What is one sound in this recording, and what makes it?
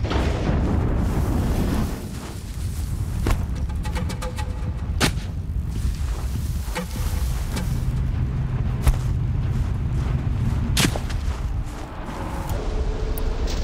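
Wind howls steadily in a snowstorm.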